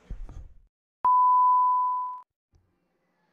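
A steady high beep sounds briefly.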